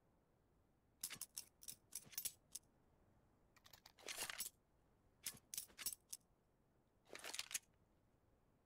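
A knife flicks and snaps with light metallic clicks.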